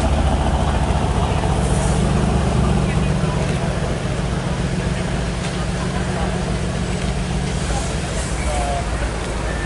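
A sports car engine rumbles deeply and pulls slowly away.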